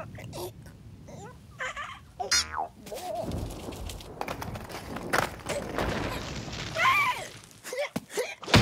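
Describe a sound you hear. A cartoon bird squawks in alarm.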